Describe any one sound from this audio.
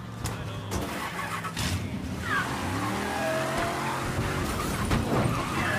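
A muscle car engine revs as the car pulls away.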